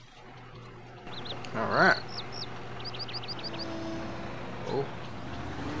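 A backhoe loader's diesel engine runs as the machine drives.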